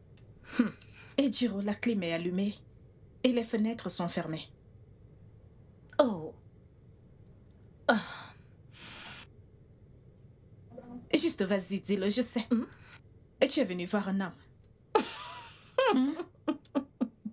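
Another young woman answers calmly, close by.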